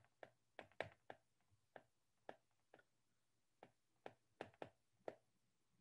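A pen taps and clicks on a hard writing surface in short bursts.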